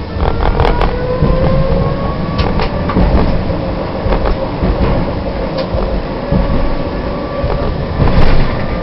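Tram wheels squeal faintly on the rails.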